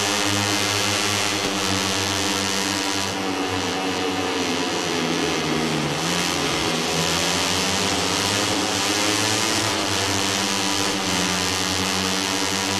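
A motorcycle engine revs loudly, its pitch rising and falling as the bike shifts gears and slows for corners.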